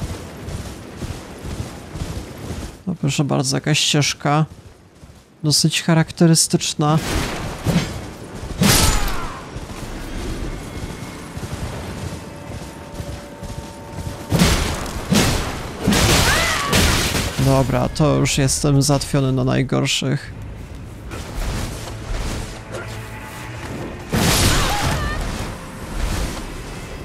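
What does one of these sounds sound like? Hooves gallop steadily through tall grass.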